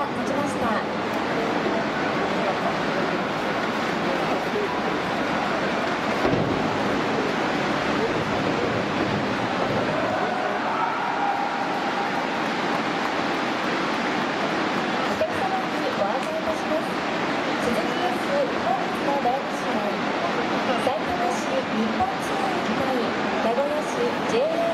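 A large crowd cheers and roars in a big echoing stadium.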